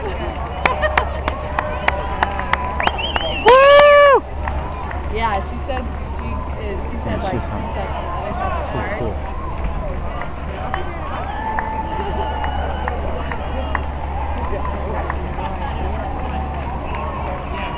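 Spectators cheer and shout from the roadside.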